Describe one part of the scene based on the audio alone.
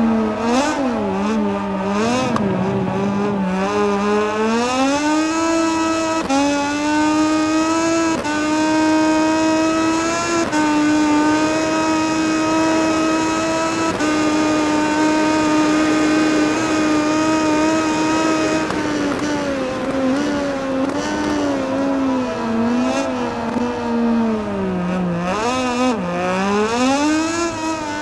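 A racing motorcycle engine screams, rising through the gears on the straight and dropping as it brakes for the corners.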